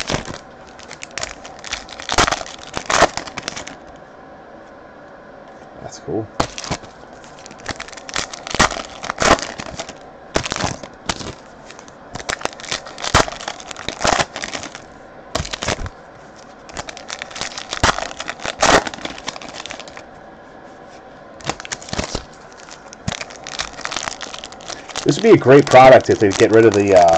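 Foil packs crinkle and tear as hands rip them open.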